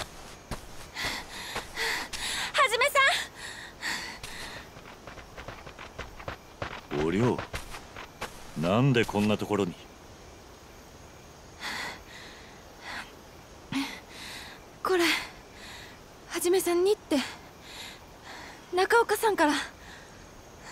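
A young woman calls out loudly and excitedly.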